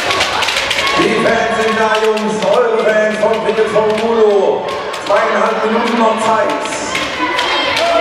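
A crowd of spectators chants loudly in a large echoing hall.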